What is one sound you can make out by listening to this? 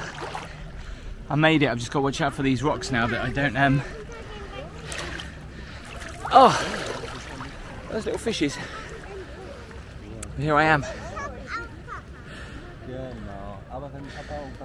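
Shallow sea water laps gently close by.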